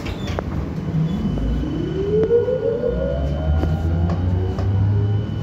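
A train's motor whines, rising in pitch as it speeds up.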